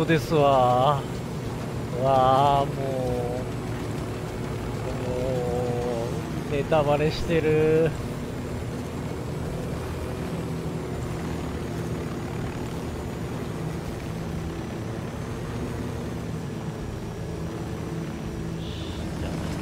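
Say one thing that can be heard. A helicopter's rotor drones steadily as it flies and lands.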